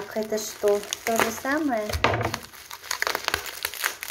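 Bubble wrap crinkles and rustles.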